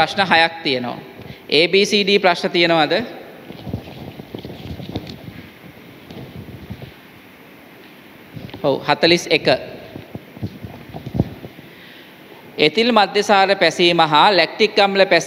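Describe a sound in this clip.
A young man speaks into a microphone in an echoing room, reading out with expression.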